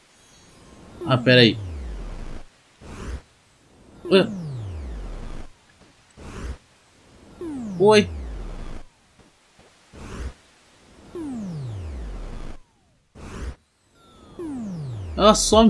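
A deep electronic whoosh sweeps downward, again and again.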